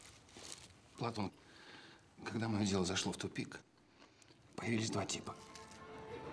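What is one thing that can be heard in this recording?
A middle-aged man speaks up close.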